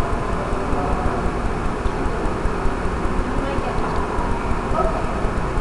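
A crowd of adults chatters and murmurs nearby.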